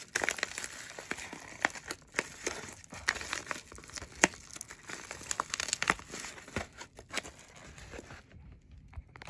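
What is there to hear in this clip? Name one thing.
A plastic bubble mailer crinkles and rustles in a hand.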